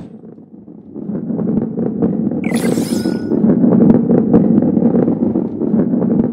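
A ball rolls with a low, steady rumble.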